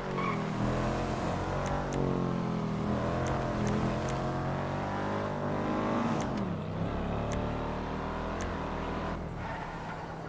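A pickup truck's engine hums steadily as it drives along a road.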